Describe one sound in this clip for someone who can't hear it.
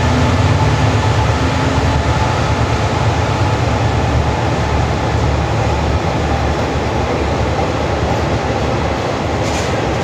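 A locomotive engine rumbles loudly as it passes.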